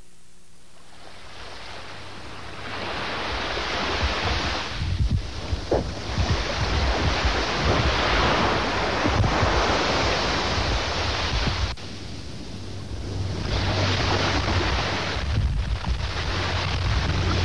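Waves wash onto a beach with a steady rush.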